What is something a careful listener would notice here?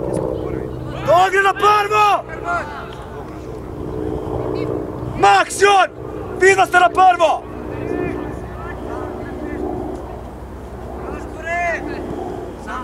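Young players shout loudly across an open field.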